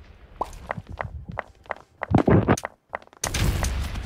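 Blocks crack and break under a pickaxe in a game.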